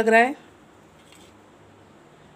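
A spoon scrapes against a plate.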